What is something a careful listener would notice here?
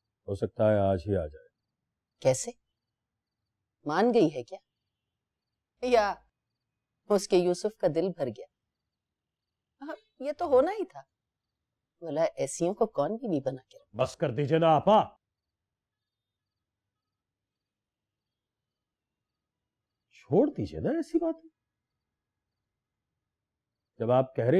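A middle-aged man speaks forcefully and with emotion, close by.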